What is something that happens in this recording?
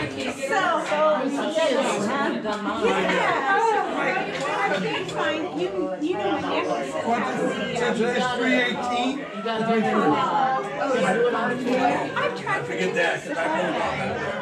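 Many people chatter at once in a crowded room.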